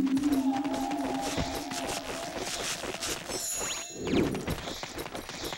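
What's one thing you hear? Bright magical chimes twinkle as glowing sparkles burst around a game character.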